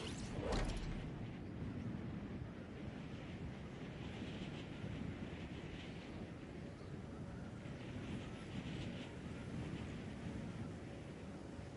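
Wind rushes softly during a slow glide.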